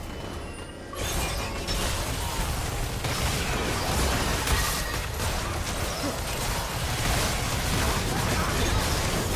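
Magic spell effects crackle and burst in a fast game battle.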